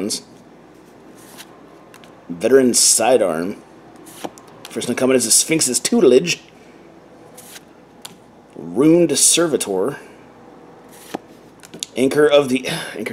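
Playing cards rustle and slide softly as they are handled.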